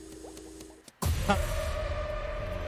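A blade strikes with a loud, sudden slashing hit.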